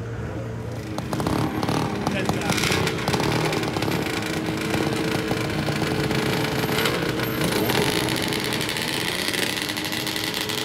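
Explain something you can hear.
Snowmobile engines idle and rumble nearby outdoors.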